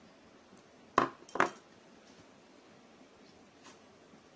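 A spoon taps against an eggshell.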